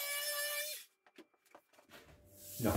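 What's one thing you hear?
A power tool is set down on a table with a knock.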